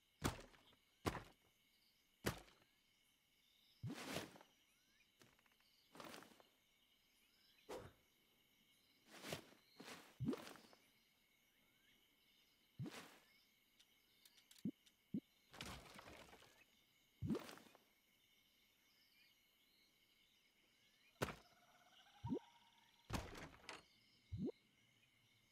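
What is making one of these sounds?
Wooden building pieces clunk and thud into place.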